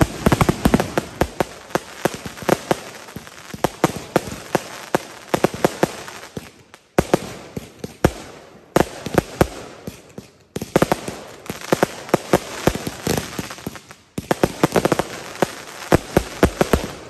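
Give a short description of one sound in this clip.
A bonfire crackles and pops loudly.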